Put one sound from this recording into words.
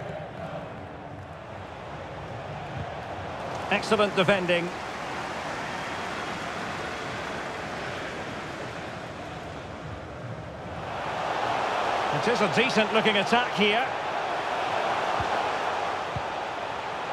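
A large stadium crowd murmurs steadily and swells into a loud roar.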